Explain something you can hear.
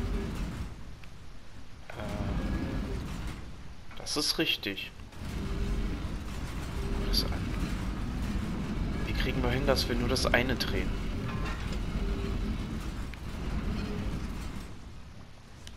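Heavy stone machinery grinds and rumbles in a large echoing hall.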